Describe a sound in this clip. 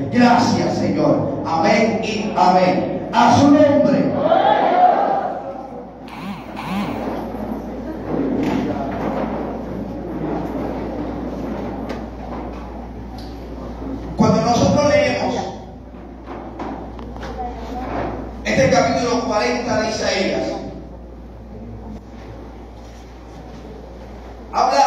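A crowd of people pray aloud together.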